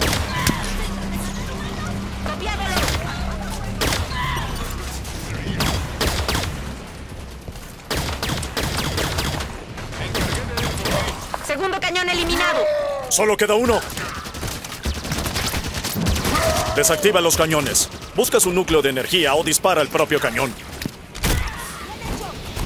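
Energy weapons fire in rapid, crackling bursts.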